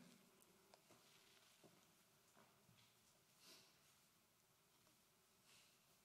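A woman speaks softly into a microphone.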